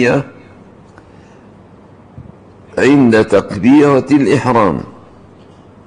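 An elderly man speaks calmly into a microphone, reading out.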